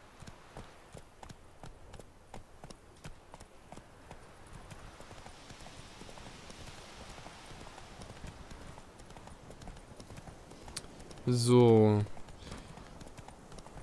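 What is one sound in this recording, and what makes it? A horse's hooves thud rhythmically on a dirt path.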